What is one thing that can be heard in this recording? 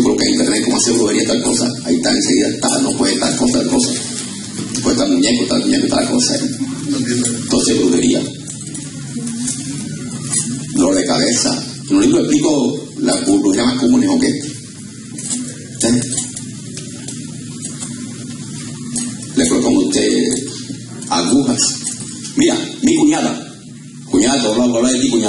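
A man preaches with passion through a microphone and loudspeakers in an echoing hall.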